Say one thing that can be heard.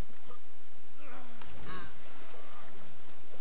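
Water splashes and gurgles as a body plunges underwater.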